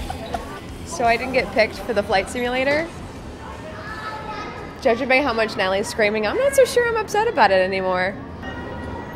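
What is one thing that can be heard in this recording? A young woman talks excitedly and close up.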